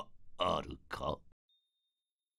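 An elderly man speaks in a low, steady voice.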